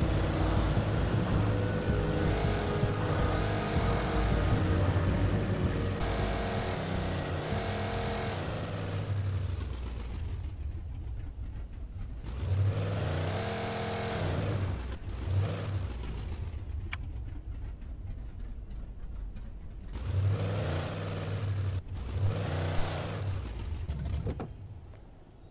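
A truck engine rumbles steadily as the truck drives along a bumpy track.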